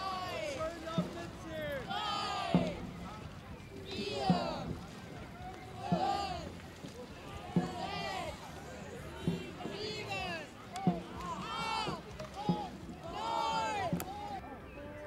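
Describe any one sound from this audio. Paddles splash into the water in time.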